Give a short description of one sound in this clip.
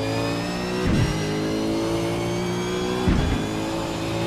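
A gearbox clunks sharply as a race car shifts gears.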